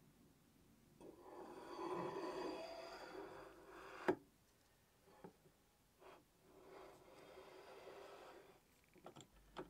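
A metal bar scrapes as it slides along a metal slide.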